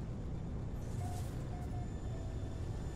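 Short electronic beeps chime from a cockpit.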